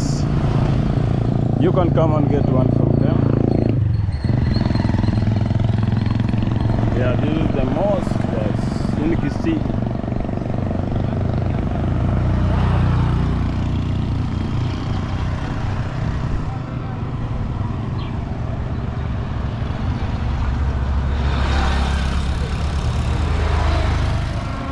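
A motorbike engine hums steadily up close as it rides along.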